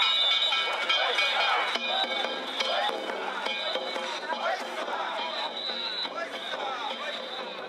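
A crowd of men chant and shout loudly in unison outdoors.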